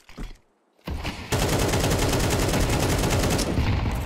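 A grenade explodes with a deep boom.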